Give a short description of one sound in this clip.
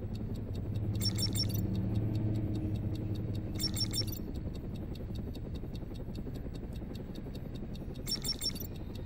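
An electronic device gives short bursts of rapid high beeps.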